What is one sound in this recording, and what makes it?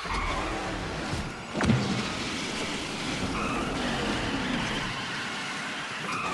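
A racing car's engine hums steadily.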